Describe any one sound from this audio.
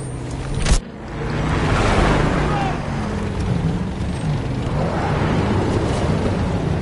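A tank engine rumbles and clanks as the tank drives.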